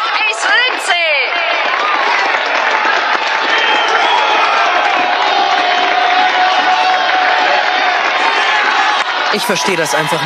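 A crowd cheers and claps loudly.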